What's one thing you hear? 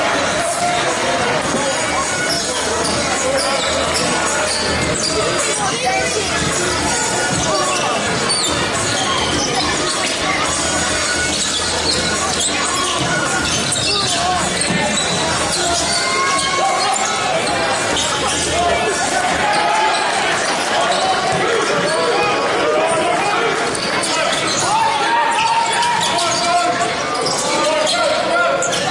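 A crowd murmurs and calls out in an echoing hall.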